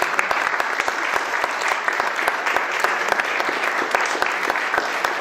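An audience applauds steadily in a small hall.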